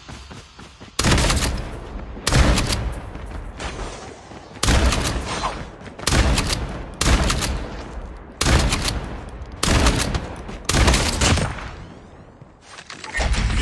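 Gunshots ring out in loud, repeated bursts.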